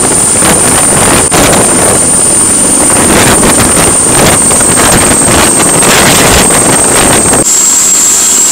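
A helicopter's rotor whirs and thumps loudly close by.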